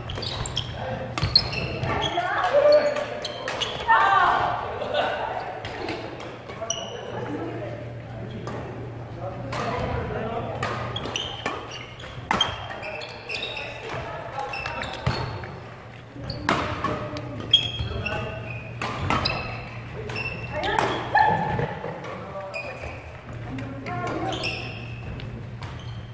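Players call out and shout to each other.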